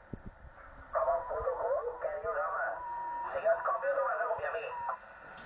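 A man talks over a radio loudspeaker, sounding thin and tinny.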